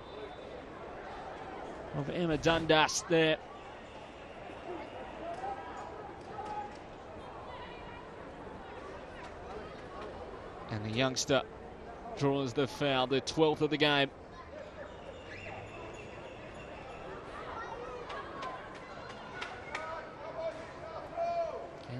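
A crowd murmurs faintly in an open stadium.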